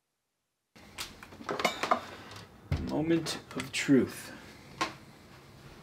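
A grinder is set down on a wooden surface with a knock.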